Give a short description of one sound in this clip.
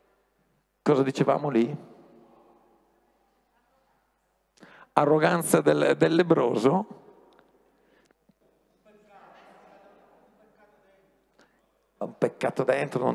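A man speaks with animation through a headset microphone, his voice echoing in a large reverberant hall.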